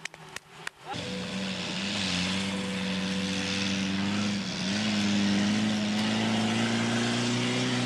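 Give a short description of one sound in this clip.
A vehicle engine idles with a steady hum in the distance.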